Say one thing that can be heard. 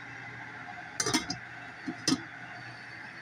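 A metal lid clinks onto a pot.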